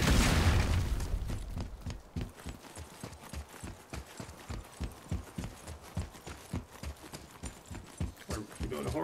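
Heavy footsteps thud quickly on stone.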